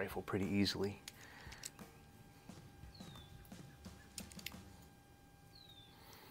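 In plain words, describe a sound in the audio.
Small metal parts click and tap as a man handles them.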